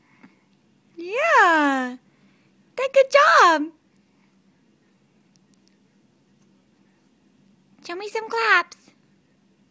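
A baby squeals and babbles in short, high-pitched bursts close by.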